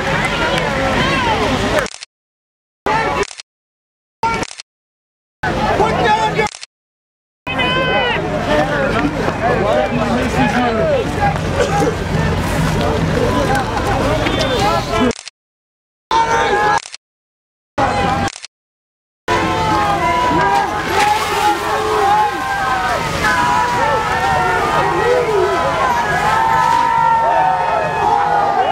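A crowd of men and women shout and chant outdoors.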